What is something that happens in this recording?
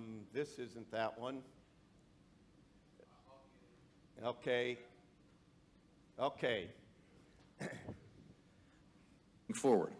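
An elderly man speaks calmly into a microphone, pausing between phrases.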